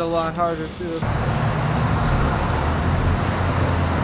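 City traffic rumbles steadily on a busy street.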